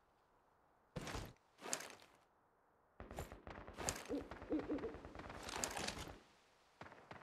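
A rifle is reloaded with quick metallic clicks and clatter.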